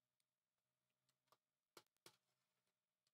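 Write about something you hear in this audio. A button clicks sharply as it is pressed.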